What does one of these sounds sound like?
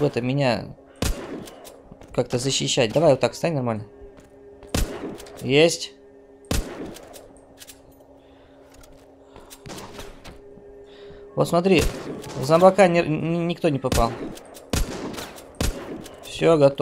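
A sniper rifle fires sharp single shots.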